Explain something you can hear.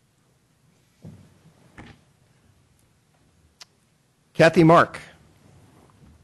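An older man speaks briefly and calmly into a microphone.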